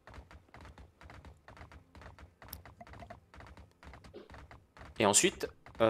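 Hooves clop steadily on dirt as a mount trots along.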